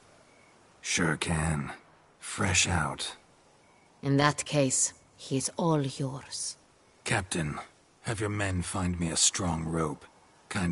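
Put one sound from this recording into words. A man speaks in a low, gruff voice, close by.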